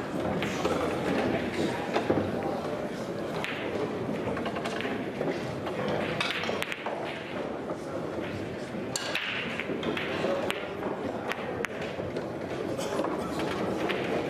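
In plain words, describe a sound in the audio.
A cue ball knocks sharply against other pool balls.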